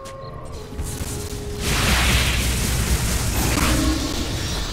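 Magic spells whoosh and blast in a burst of battle sounds from a video game.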